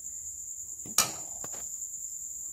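A metal spoon scrapes and clinks against a frying pan.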